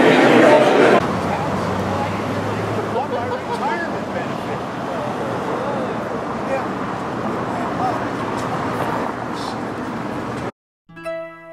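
Cars drive past on a street nearby.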